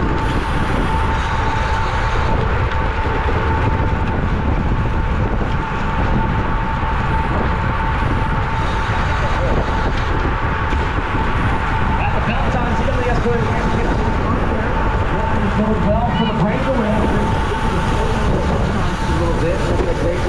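Wind rushes loudly over a bicycle-mounted microphone.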